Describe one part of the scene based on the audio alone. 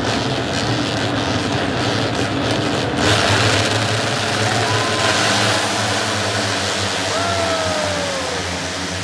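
Racing motorcycles roar past with engines whining.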